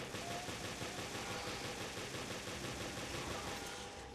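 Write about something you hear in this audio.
A creature growls and roars.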